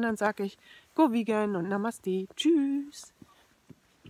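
A woman talks calmly, close to the microphone.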